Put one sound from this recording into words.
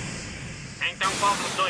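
A puff of smoke bursts with a whoosh.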